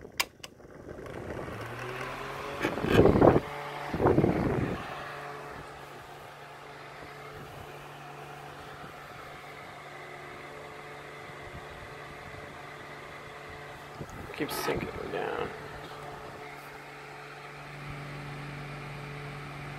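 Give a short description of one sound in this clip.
A small electric fan hums and whirs steadily close by.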